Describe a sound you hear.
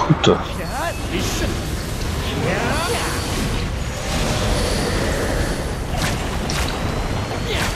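Weapons clash and magic blasts burst in a fierce fight.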